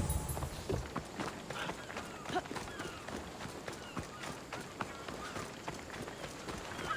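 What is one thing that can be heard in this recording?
Footsteps run quickly over sandy ground.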